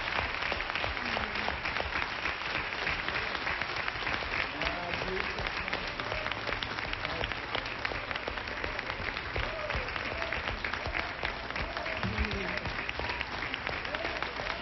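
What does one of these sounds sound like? People in a crowd cheer and whoop.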